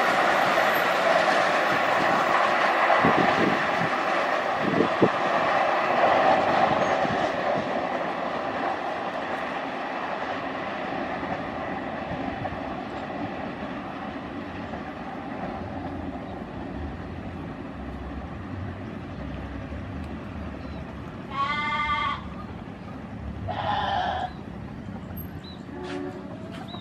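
A train rumbles along the rails and slowly fades into the distance.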